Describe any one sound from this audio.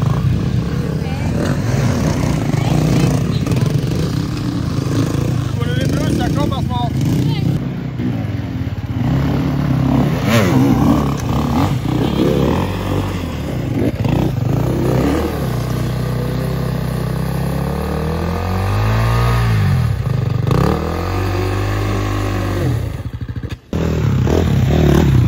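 Dirt bike engines rev loudly, rising and falling in pitch.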